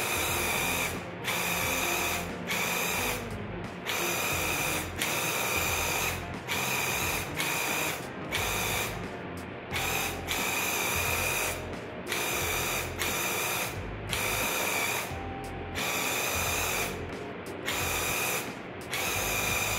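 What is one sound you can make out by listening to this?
A spray gun hisses in short bursts with brief pauses between them.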